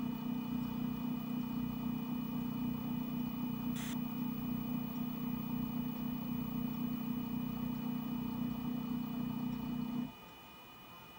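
A router motor hums steadily, close by, then stops.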